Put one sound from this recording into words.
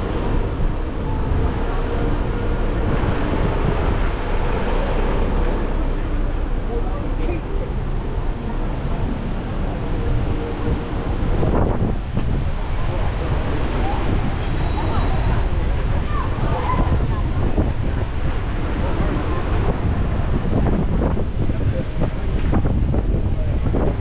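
Footsteps tap on pavement close by.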